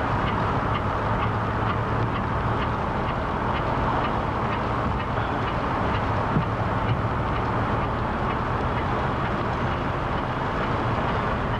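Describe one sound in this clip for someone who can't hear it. Bicycle tyres hum on the pavement.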